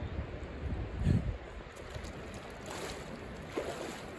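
Water splashes as a woman wades out of a river.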